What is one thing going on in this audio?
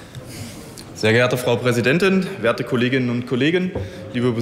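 A man speaks steadily into a microphone in a large hall.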